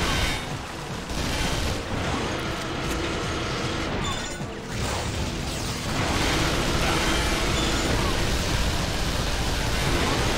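An assault rifle fires rapid bursts.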